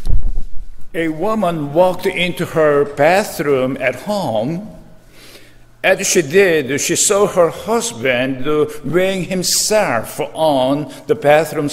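An elderly man speaks calmly into a microphone in a reverberant hall.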